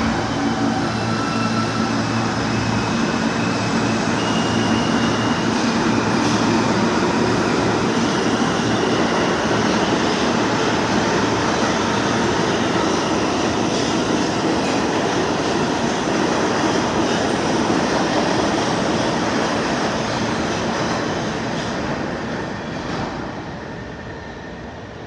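A subway train rumbles and roars loudly along the tracks in an echoing underground station.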